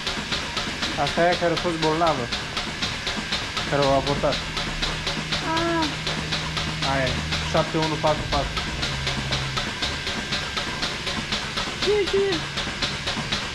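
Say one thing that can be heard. Cows moo loudly.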